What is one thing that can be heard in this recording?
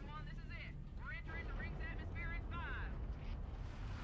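A man speaks urgently over a radio, sounding filtered.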